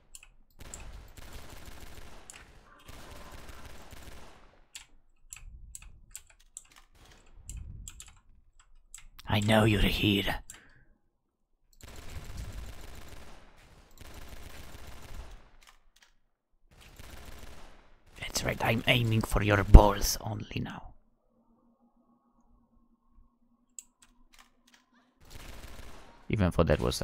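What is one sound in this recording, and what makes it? A pistol fires shot after shot.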